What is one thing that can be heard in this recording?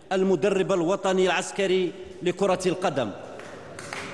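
A man announces through a microphone.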